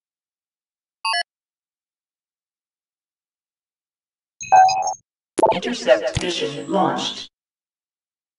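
Short electronic beeps sound from a game menu.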